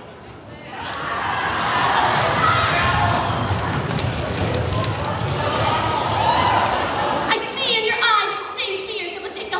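A large crowd cheers and screams in a big echoing hall.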